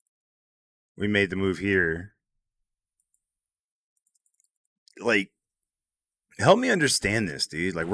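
A man speaks with animation through a close microphone.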